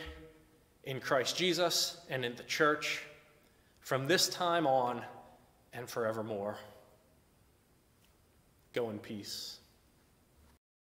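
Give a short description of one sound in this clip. A man speaks calmly in a slightly echoing room, with pauses.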